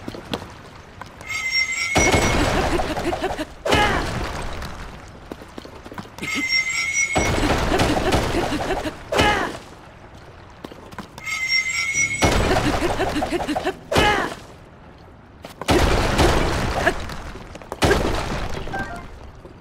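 A hammer strikes rock again and again, with heavy crashing bursts.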